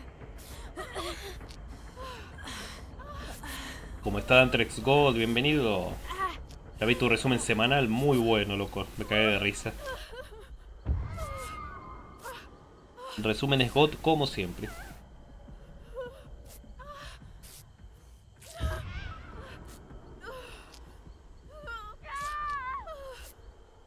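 Heavy footsteps tread through grass.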